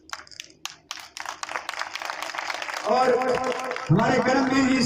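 Several men shout and cheer loudly.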